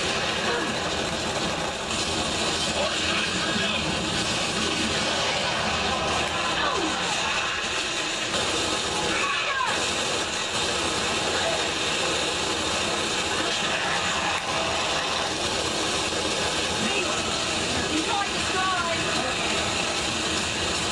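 Gunfire and explosions from a video game play through a television speaker.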